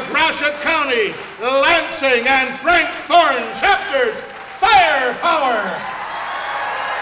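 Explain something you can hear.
A man speaks into a microphone with animation in an echoing hall.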